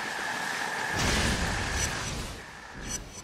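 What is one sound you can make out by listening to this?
An electric blast crackles and booms.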